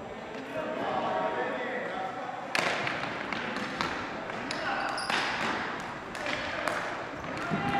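Hockey sticks clack and slap a ball on a hard floor, echoing in a large hall.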